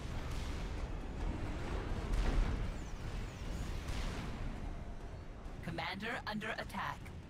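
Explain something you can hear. Distant gunfire and explosions rumble low and steadily.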